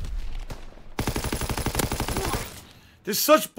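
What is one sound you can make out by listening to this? An automatic rifle fires a rapid burst.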